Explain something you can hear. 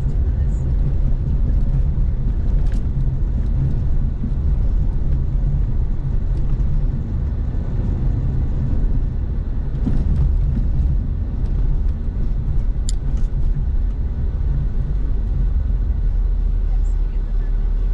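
Tyres rumble over the road surface.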